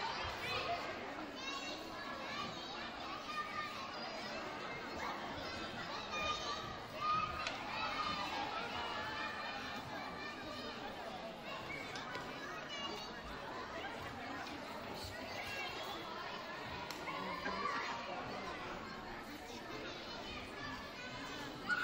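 Young girls call out and shout.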